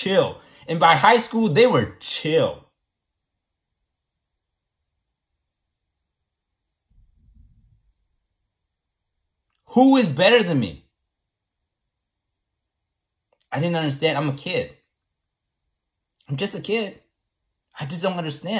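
A man speaks close to a microphone, in short bursts with pauses between.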